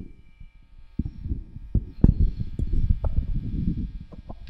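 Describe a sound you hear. Equipment knocks and clunks as a man handles it on the floor.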